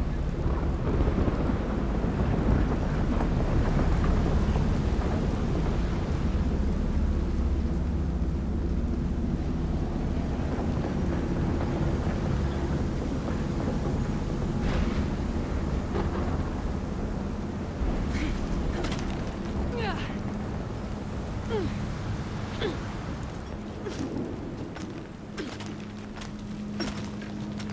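Rain falls steadily in a gusting wind.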